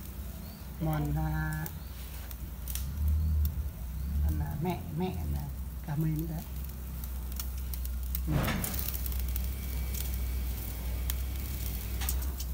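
Metal tongs clink against a grill.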